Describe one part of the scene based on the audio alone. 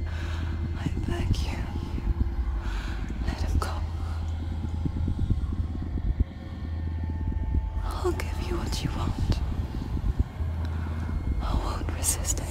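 A young woman speaks softly and pleadingly, close by.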